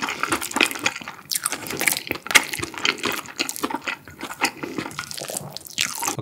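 A wooden spoon scrapes against a ceramic bowl.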